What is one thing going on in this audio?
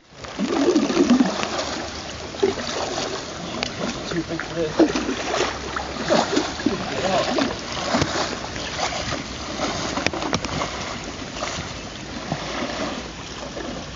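A paddle dips and splashes in water.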